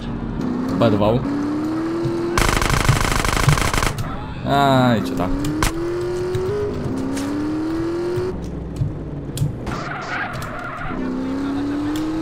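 A motorbike crashes and scrapes along the road.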